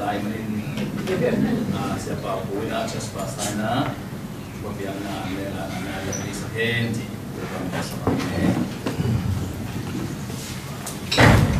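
A man speaks steadily into a microphone.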